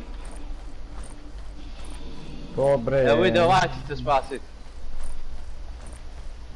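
Footsteps thud softly on grass at an even pace.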